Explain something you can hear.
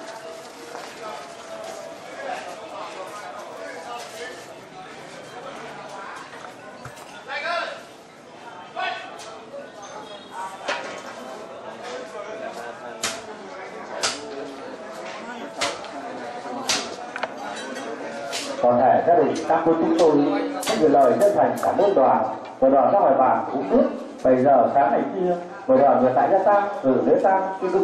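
Several men and women murmur and talk quietly nearby.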